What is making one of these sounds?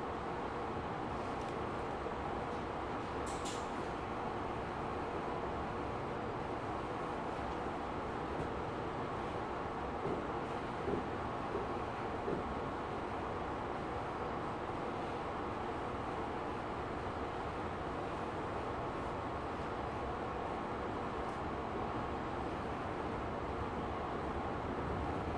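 A commuter electric train rumbles along the rails, heard from inside the car.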